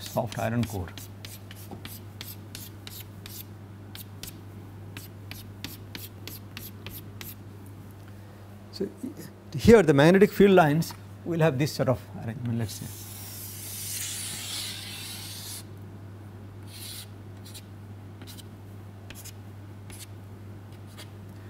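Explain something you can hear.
Chalk taps and scrapes quickly on a board.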